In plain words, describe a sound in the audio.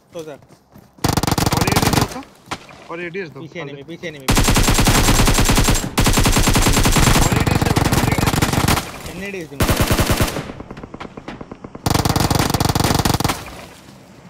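Automatic rifle gunfire rattles in rapid bursts.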